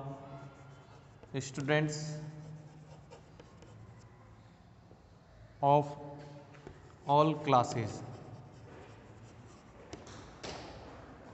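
Chalk scratches and taps on a chalkboard.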